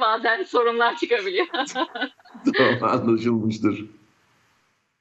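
A middle-aged man laughs and talks with animation over an online call.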